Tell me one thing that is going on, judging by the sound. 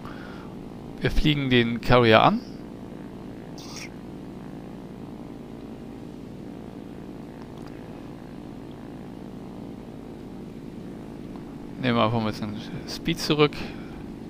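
A plane's engine drones steadily throughout.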